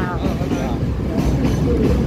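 A train rumbles past close by.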